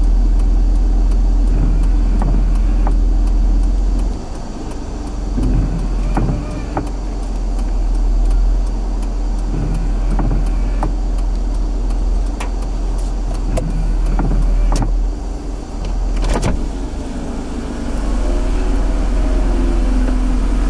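A car rolls slowly forward, its low rumble heard from inside.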